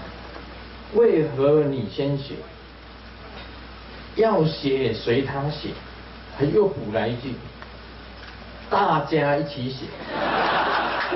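An elderly man speaks into a microphone in short, animated phrases.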